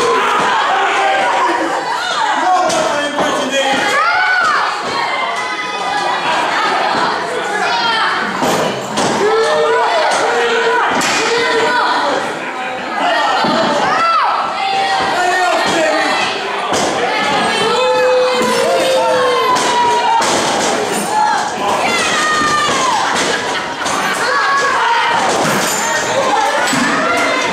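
A crowd shouts and cheers throughout in an echoing hall.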